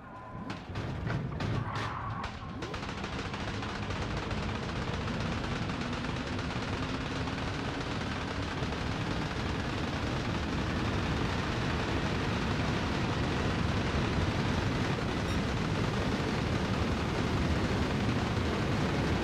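A racing car engine roars and climbs steadily in speed.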